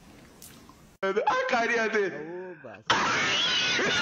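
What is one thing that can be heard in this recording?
A young man laughs loudly and wildly through a microphone.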